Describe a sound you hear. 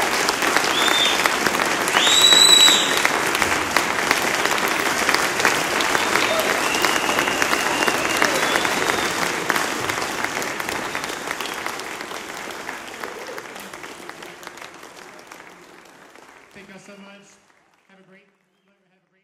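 A large audience applauds in a hall, then the applause slowly fades.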